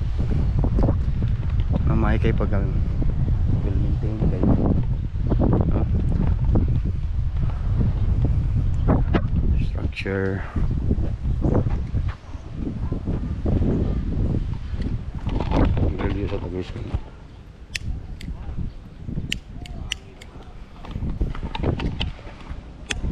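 A man talks calmly and close to the microphone.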